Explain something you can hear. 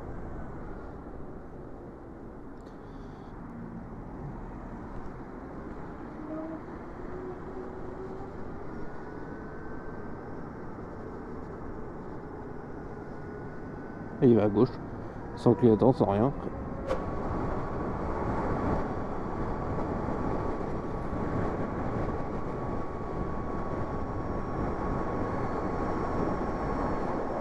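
Wind rushes loudly past a moving motorcycle.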